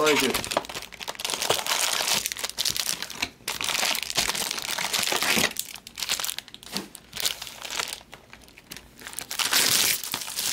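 Plastic wrappers crinkle and rustle as they are handled.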